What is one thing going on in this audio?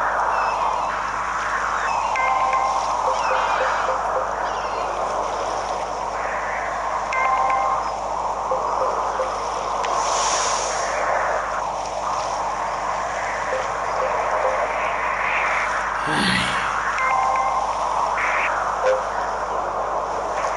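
Game sound effects chime and whoosh through a television speaker.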